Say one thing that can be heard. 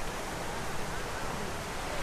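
Fountain water splashes and hisses steadily.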